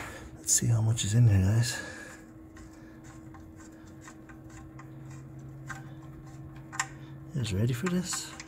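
A metal drain plug scrapes faintly as a hand unscrews it.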